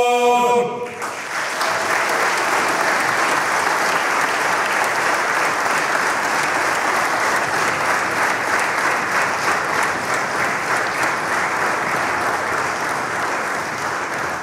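An audience applauds loudly and steadily.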